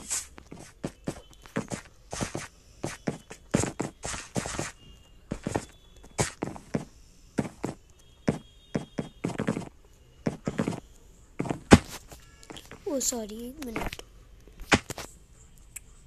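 Quick game footsteps and block clicks tap rapidly.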